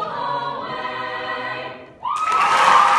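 A choir sings a held chord in a large hall and then stops.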